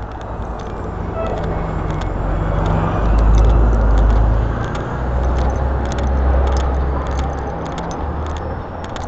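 A bus rumbles past close by.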